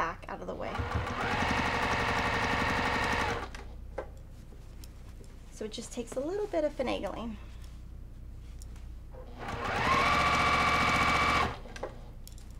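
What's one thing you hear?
A sewing machine whirs steadily as it stitches.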